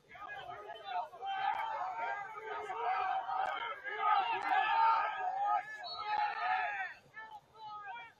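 Spectators cheer and call out from the sidelines.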